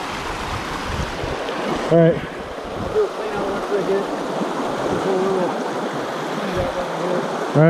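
A shallow stream rushes and babbles over stones.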